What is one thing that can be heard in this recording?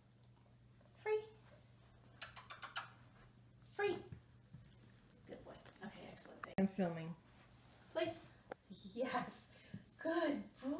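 A woman speaks to a dog nearby in an encouraging voice.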